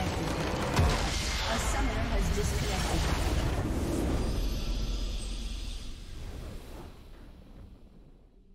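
A crystal shatters with a loud, booming crash.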